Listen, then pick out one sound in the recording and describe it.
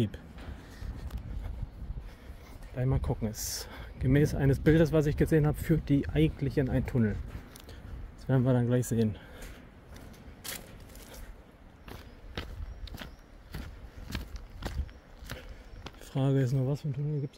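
Footsteps tread steadily along a walkway and track bed.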